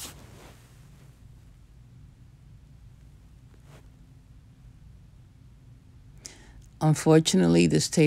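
Small wooden sticks tap softly on cardboard.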